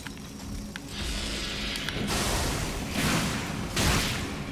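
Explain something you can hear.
Magic crackles and whooshes loudly.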